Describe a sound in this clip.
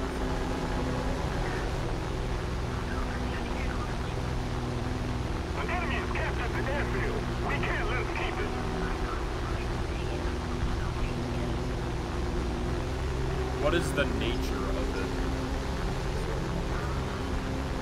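A plane's propeller engine drones steadily.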